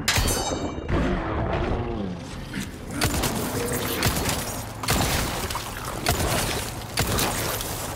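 A creature growls and shrieks.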